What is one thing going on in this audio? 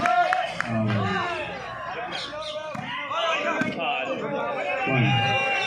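A large outdoor crowd of men and boys shouts and cheers loudly.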